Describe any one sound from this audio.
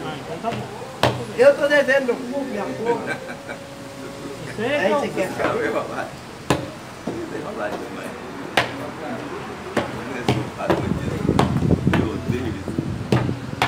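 Checker pieces click sharply on a board.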